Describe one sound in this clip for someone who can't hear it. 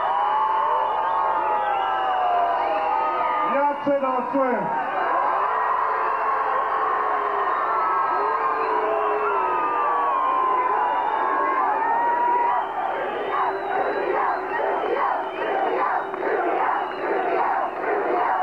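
A large outdoor crowd of men and women murmurs and chatters loudly.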